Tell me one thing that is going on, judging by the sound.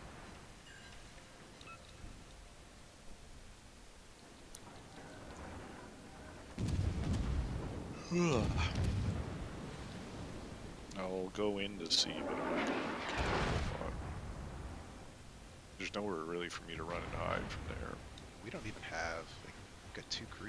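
Shells splash into water.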